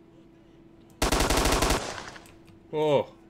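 A rifle fires a loud shot that rattles and echoes.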